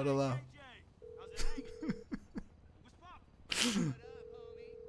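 A phone call rings out with a steady repeating tone.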